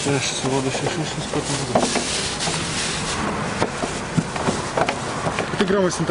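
Plastic wrapping crinkles as hands unwrap packages.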